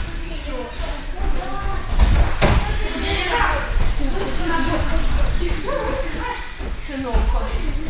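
Bare feet thud on a padded mat.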